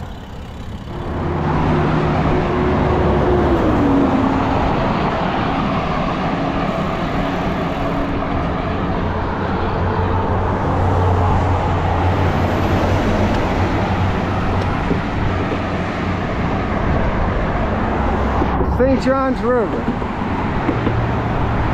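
Traffic rumbles steadily past close by.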